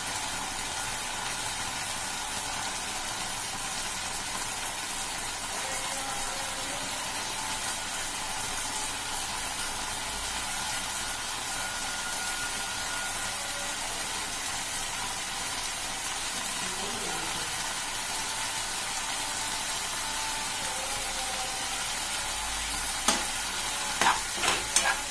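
Chickpeas sizzle in a wok.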